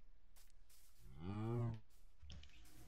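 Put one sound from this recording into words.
A horse whinnies.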